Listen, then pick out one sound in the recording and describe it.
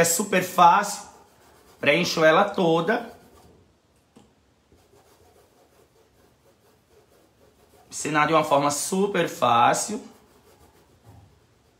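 A paintbrush dabs and brushes softly on cloth.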